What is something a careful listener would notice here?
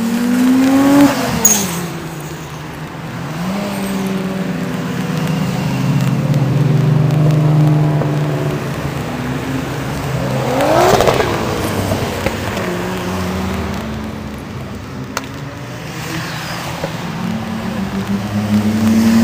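Car engines rumble and rev as cars drive past close by, one after another.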